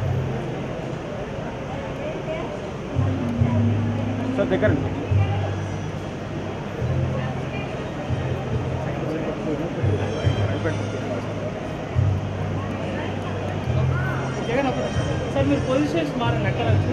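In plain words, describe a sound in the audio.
A crowd of men and women chatters indistinctly nearby.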